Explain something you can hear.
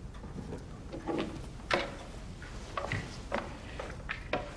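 A woman speaks in a low, tense voice close by.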